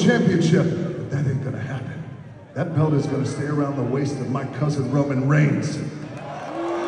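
A man speaks loudly into a microphone over loudspeakers, echoing in a large hall.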